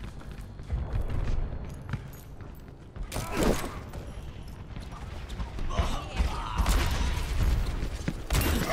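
Footsteps thud on a hard metal floor.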